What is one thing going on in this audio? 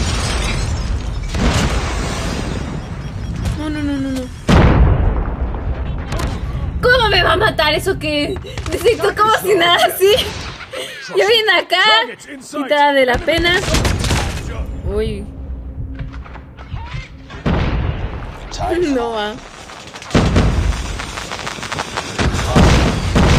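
Video game gunfire rattles in bursts.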